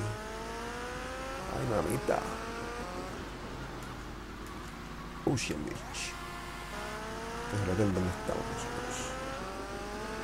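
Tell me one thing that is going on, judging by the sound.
A motorbike engine drones and rises in pitch as it revs through the gears.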